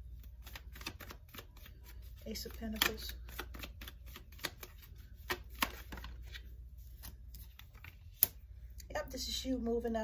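Playing cards riffle and tap softly while being shuffled.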